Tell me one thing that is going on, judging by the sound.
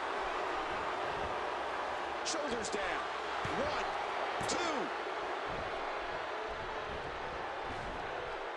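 A large crowd cheers steadily in a big arena.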